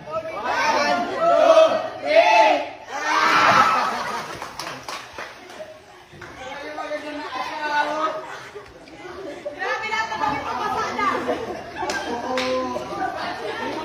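Young women shout and laugh excitedly close by.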